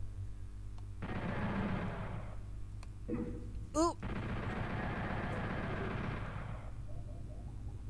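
Gunfire and game sound effects play from a video game.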